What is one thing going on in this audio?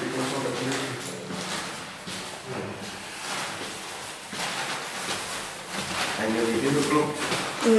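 Footsteps climb stairs.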